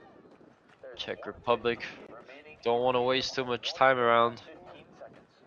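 Young men shout loudly across an open field outdoors.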